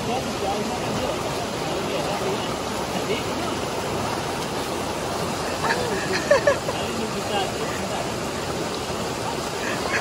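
Water rushes steadily over rocks nearby.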